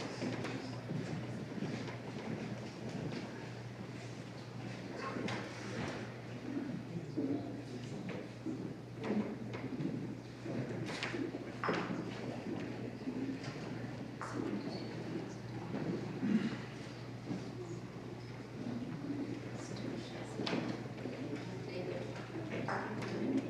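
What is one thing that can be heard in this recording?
Footsteps tap lightly on a wooden floor.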